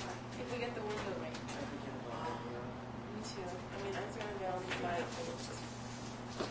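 A young woman talks casually nearby.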